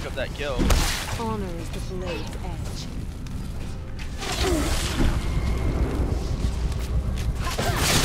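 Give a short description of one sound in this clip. Fiery explosions boom in quick bursts.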